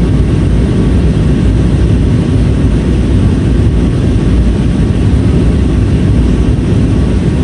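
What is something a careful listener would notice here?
Jet engines roar steadily inside an airplane cabin in flight.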